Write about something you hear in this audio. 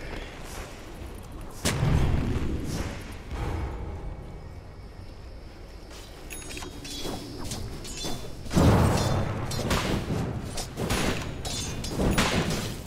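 Magic blasts and weapon hits crash in short, loud bursts.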